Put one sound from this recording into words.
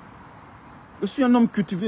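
A middle-aged man speaks close to the microphone.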